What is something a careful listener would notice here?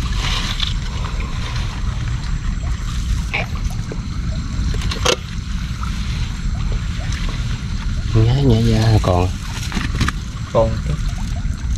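A plastic bag rustles and crinkles close by.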